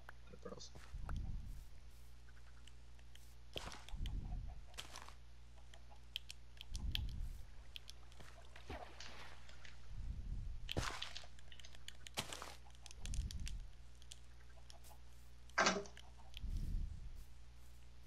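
A hoe thuds into soil at intervals.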